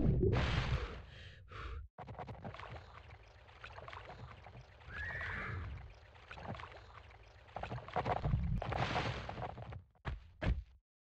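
Water splashes as someone wades through it.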